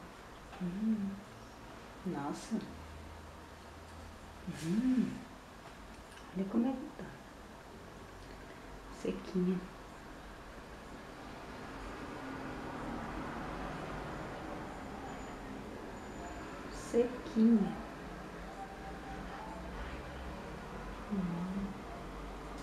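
A young woman speaks calmly and close by, in short phrases with pauses.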